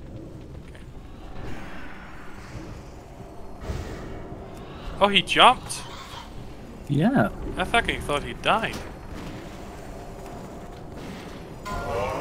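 Spell effects crackle and boom during a fight.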